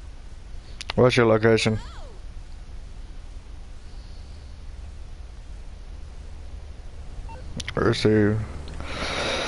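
A phone rings in short bursts.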